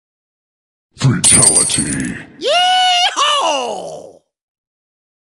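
A cartoon zombie groans.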